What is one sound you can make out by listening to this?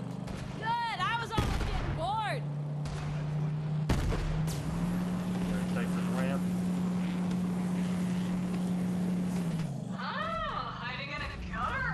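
Gunfire cracks.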